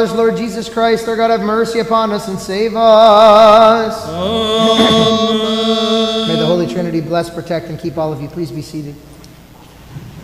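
Voices chant a hymn together in a large echoing hall.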